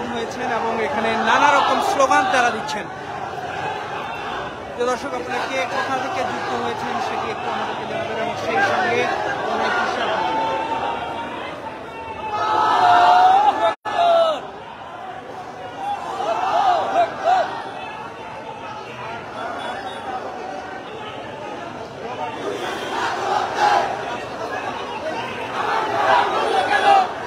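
Young men cheer and whoop in bursts.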